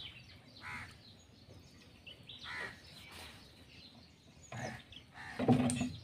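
A paddle splashes and dips in water.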